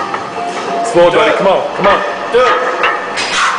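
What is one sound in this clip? A man grunts and strains with effort.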